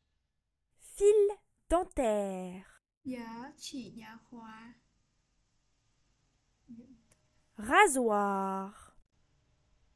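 A young woman speaks slowly and clearly close to a microphone, in short separate words.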